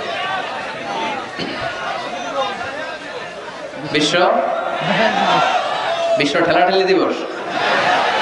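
A man preaches forcefully into a microphone, heard through loudspeakers.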